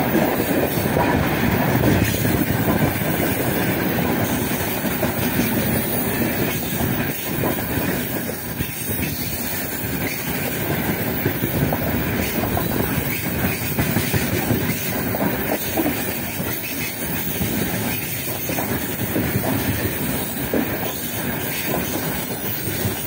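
Freight wagon wheels clatter over the rail joints.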